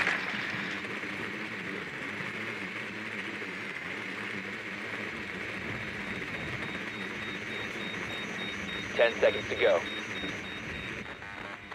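A small remote-controlled drone whirs as it rolls across a hard floor.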